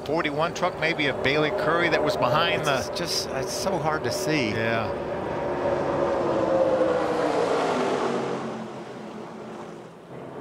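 Tyres screech as race cars spin and skid.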